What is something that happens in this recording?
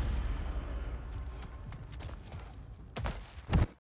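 Heavy footsteps crunch on stony ground.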